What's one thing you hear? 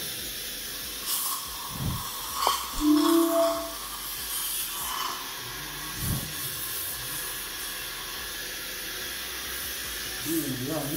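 A dental suction tube hisses steadily.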